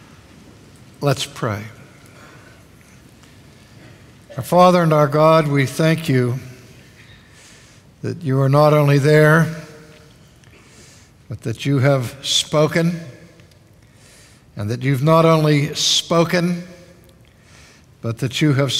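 A man speaks slowly and deliberately through a microphone in a large echoing hall, with pauses between phrases.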